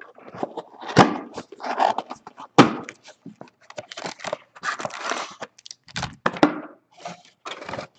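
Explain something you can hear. Card packs tap and knock on a desk.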